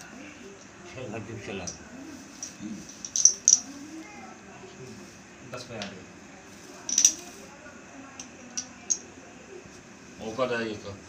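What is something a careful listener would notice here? A man talks quietly nearby.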